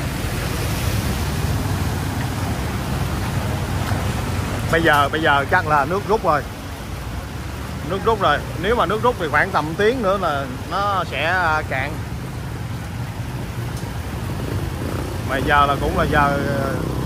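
Motorbike engines hum and putter close by.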